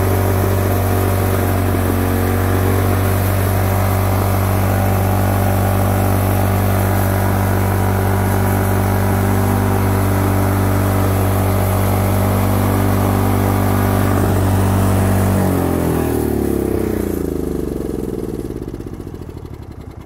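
A small petrol engine runs loudly and steadily, then shuts off and winds down to a stop.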